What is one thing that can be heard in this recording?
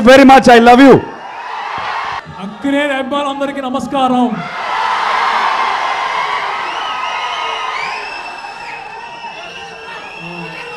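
A large crowd cheers and whistles loudly.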